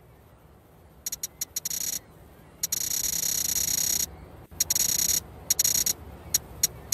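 A bright, buzzing tone sounds in bursts as a setting slides.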